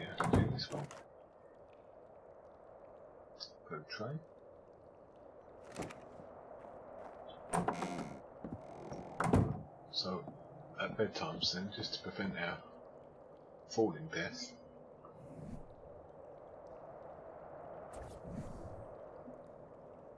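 Short interface clicks sound as a game menu opens and closes.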